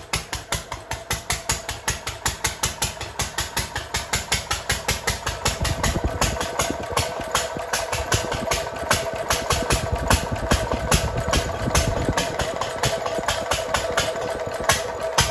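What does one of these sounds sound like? A small single-cylinder petrol stationary engine runs with an even chugging beat.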